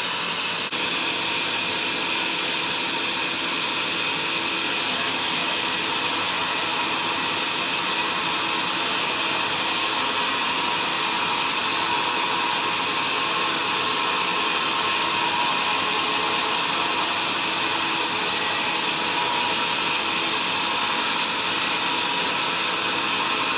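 A band saw whines loudly as it cuts through a thick timber beam.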